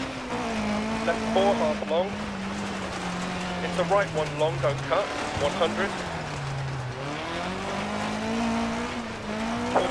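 Tyres crunch and hiss over loose gravel.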